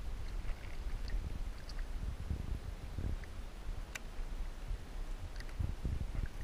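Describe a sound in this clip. Water laps and splashes against the side of a boat close by.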